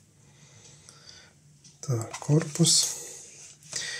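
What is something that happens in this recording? A plastic casing clicks and rattles as hands handle it.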